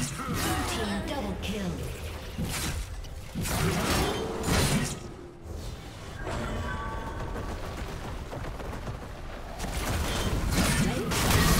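Magic spells blast and crackle in a busy fight.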